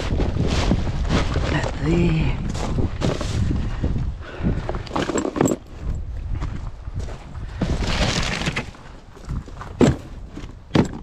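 Cardboard rustles and scrapes inside a plastic bin.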